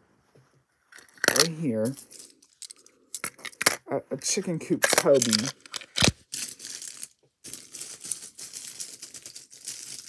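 Small plastic toys clatter and click against a plastic box.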